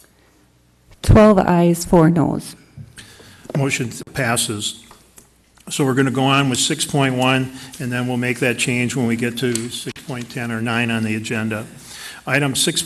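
A man speaks formally into a microphone.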